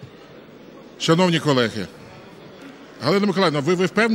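A man speaks over a loudspeaker in a large hall.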